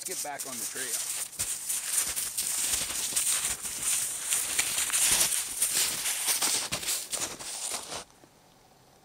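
Snowshoes crunch through snow.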